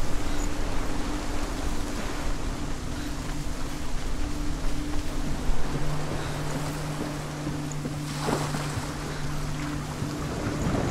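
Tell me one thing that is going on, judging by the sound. Wind roars steadily.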